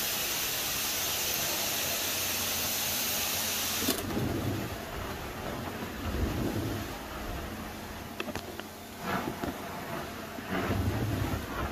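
A carpet cleaning wand hisses loudly as it sucks water from a carpet.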